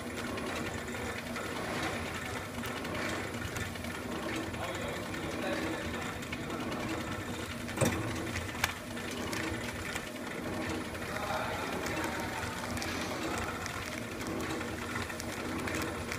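A packaging machine hums and whirs steadily.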